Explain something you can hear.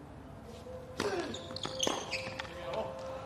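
A tennis ball is struck with a racket, with sharp pops.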